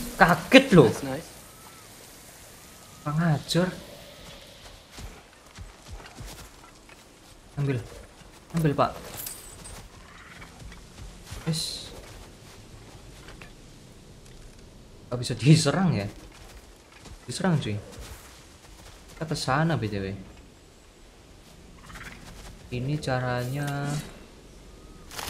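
A young man talks calmly into a close microphone, in short bursts.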